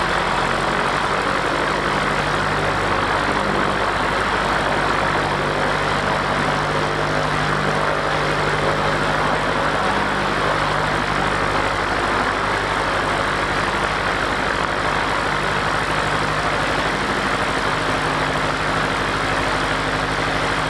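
A small propeller plane's engine roars steadily close by.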